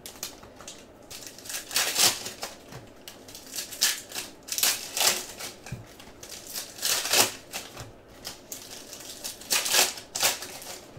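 Foil wrappers crinkle and tear in quick bursts.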